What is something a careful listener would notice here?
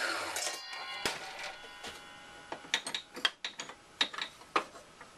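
Wood knocks and clatters on a metal table.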